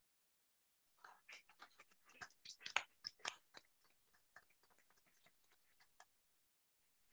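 An audience claps in a large room, the applause fading out.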